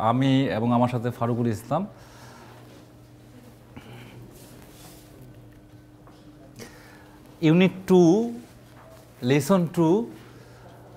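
A man speaks calmly and clearly to a room, his voice echoing slightly.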